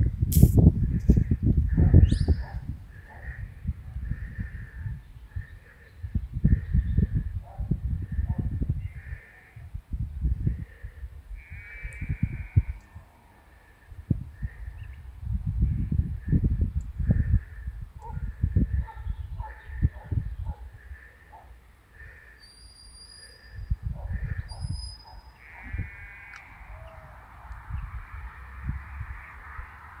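Wind gusts loudly outdoors.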